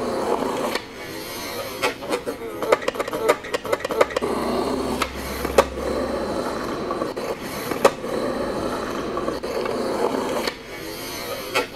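A skateboard clatters as it lands on concrete.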